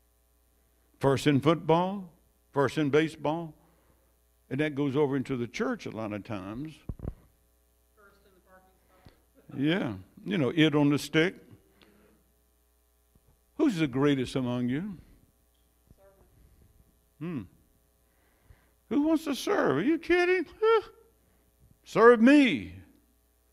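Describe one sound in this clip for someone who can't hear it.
An elderly man speaks with animation into a microphone, in bursts with pauses.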